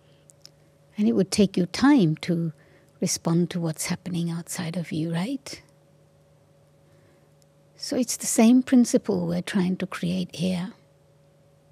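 An elderly woman speaks slowly and calmly into a microphone, with long pauses.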